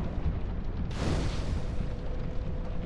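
A fire flares up with a sudden roar.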